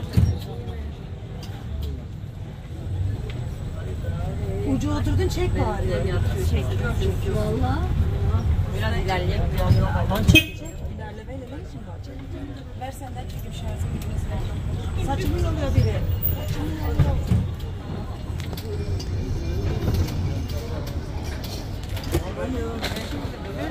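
A small open vehicle rumbles along a paved street.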